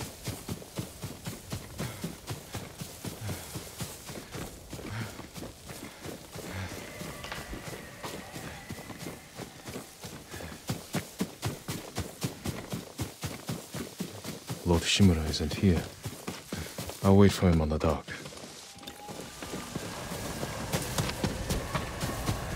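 Horse hooves gallop steadily over soft ground.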